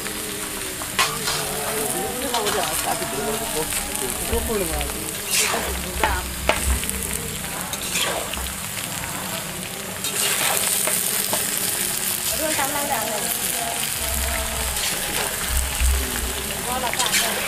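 A metal spatula scrapes and clatters against a pan while stirring.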